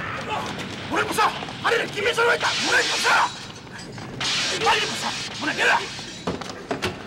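Men shout.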